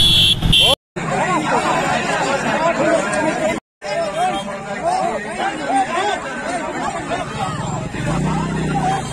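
A crowd of men talk and shout close by.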